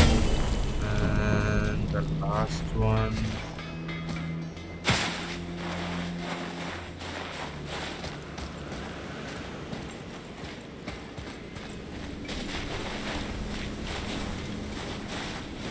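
Footsteps crunch on snow and stone.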